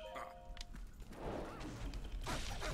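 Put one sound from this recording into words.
Sword clashes and battle noise ring out in a video game.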